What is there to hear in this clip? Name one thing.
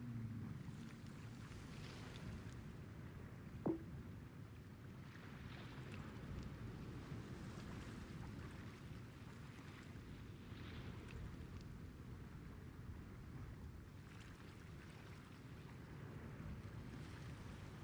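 Water laps gently against a large ship's hull.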